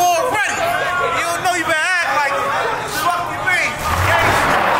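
A man raps loudly.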